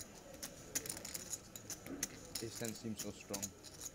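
Poker chips click together.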